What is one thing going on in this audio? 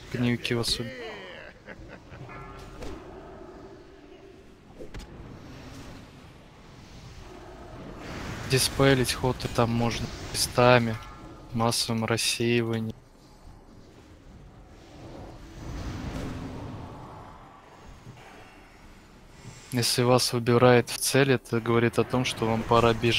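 Magic spells whoosh and crackle in a noisy battle.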